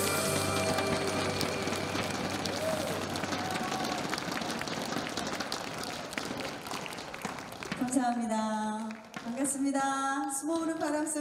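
A woman sings into a microphone over loudspeakers in a large hall.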